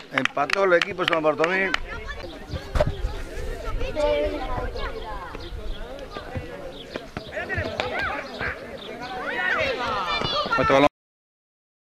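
Children shout and call out to each other outdoors.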